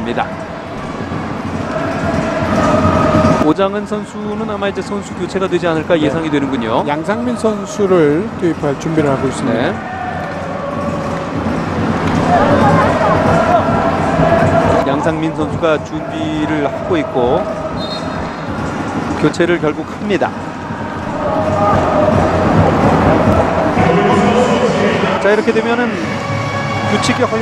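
A large crowd chants and cheers in an open stadium.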